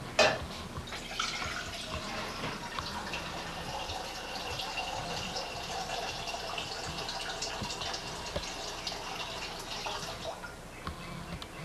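Water pours steadily from a kettle into a metal pot.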